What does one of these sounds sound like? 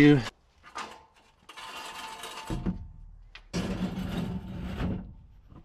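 A metal ramp scrapes and clanks as it slides into place.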